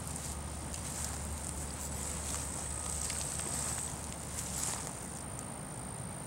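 A large bird flaps its wings as it takes off.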